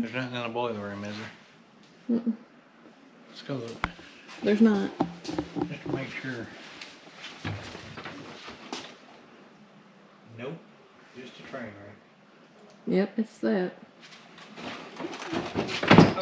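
A man talks casually, close by.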